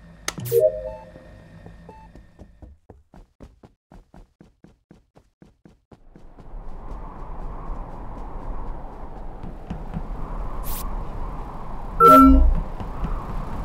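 A bright chime plays as a task completes.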